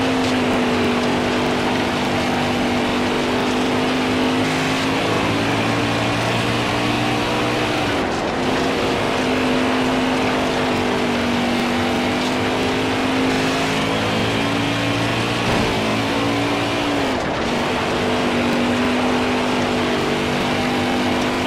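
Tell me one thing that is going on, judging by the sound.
Tyres slide and scrub on loose dirt.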